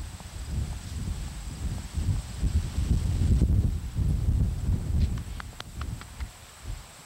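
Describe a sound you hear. A dog sniffs and rustles through grass.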